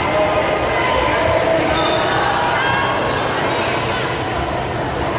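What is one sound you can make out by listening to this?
Girls chatter and call out in a large echoing gym.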